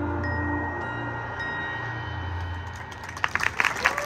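A marching band's brass holds a long, loud chord outdoors.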